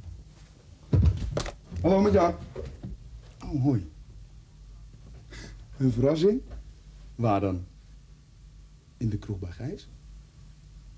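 A young man talks on the telephone.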